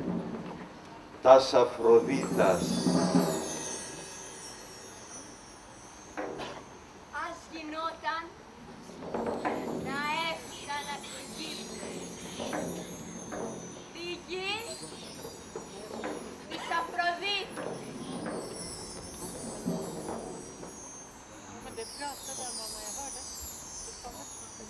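A young girl speaks with feeling through a microphone.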